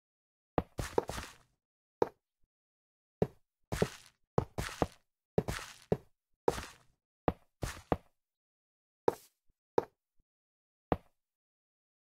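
Rails are laid down one after another with short, sharp wooden clacks.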